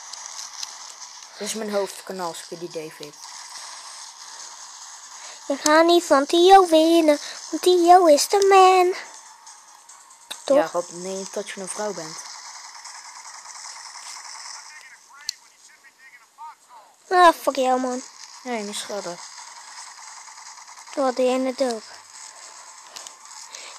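A speedboat engine drones steadily from a small handheld game speaker.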